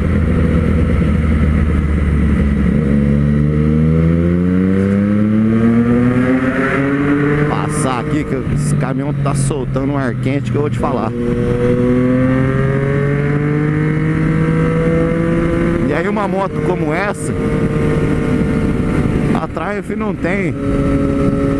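A motorcycle engine roars and revs up through the gears, its pitch rising and dropping at each shift.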